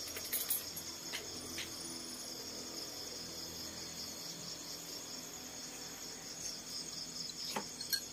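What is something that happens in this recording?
A monkey sips a drink through a straw.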